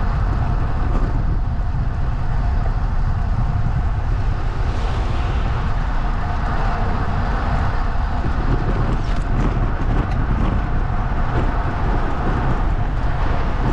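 Wind buffets the microphone steadily, a loud low rumble.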